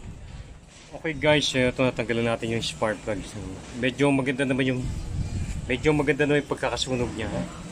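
A middle-aged man talks calmly, close to the microphone.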